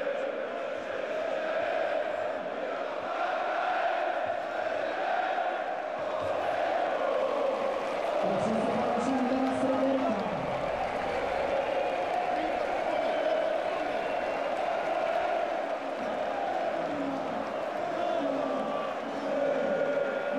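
A large stadium crowd chants and sings loudly throughout.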